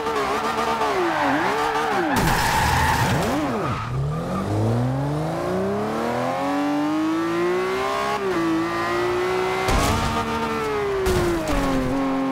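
Tyres screech as a car drifts.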